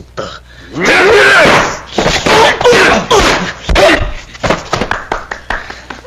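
Blows and thuds land in a fight.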